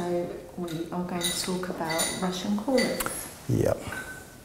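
A woman speaks calmly into a microphone nearby.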